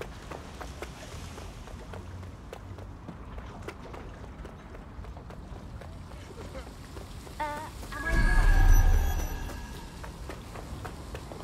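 Quick footsteps run across hard pavement.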